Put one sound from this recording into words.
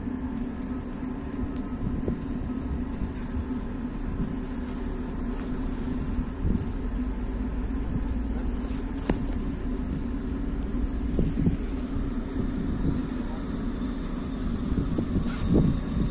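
A tram hums steadily as it moves slowly through snow.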